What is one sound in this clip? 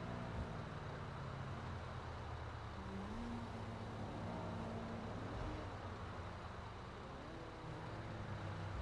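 A truck engine drones steadily at low speed.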